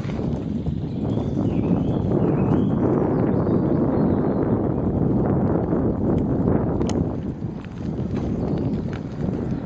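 Bicycle tyres roll along a paved path.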